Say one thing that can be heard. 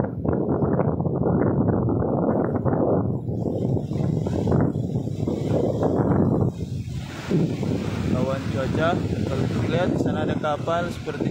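Strong wind blusters loudly outdoors.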